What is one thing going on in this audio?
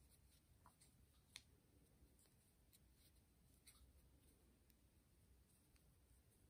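A crochet hook clicks and scrapes softly against yarn.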